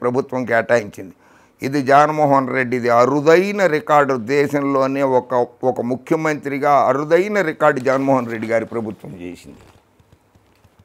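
An elderly man speaks with animation into a clip-on microphone, close by.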